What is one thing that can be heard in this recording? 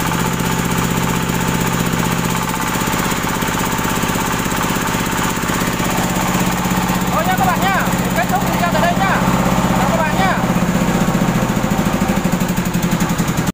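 A small diesel engine runs with a steady, loud chugging throb.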